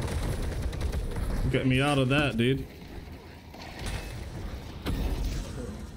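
Video game weapons fire in rapid bursts.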